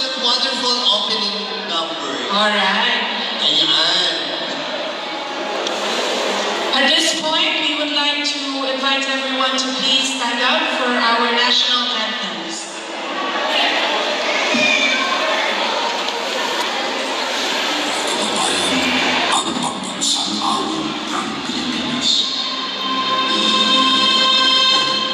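Music with singing plays loudly through loudspeakers in a large echoing hall.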